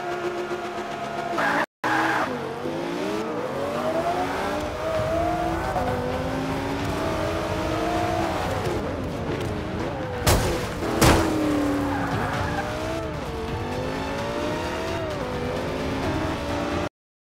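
A race car engine revs high, rising and falling as the gears shift.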